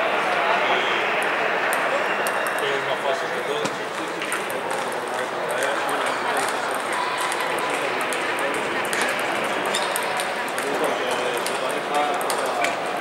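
Table tennis balls click sharply on paddles and tables.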